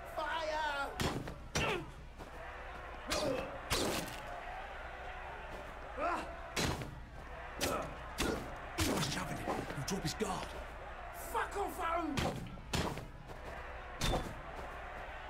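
Heavy blows thud and crack again and again.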